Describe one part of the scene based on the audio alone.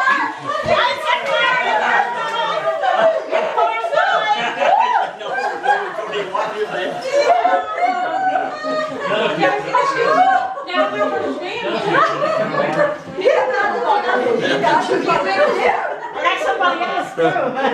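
Several women talk and laugh loudly and excitedly nearby.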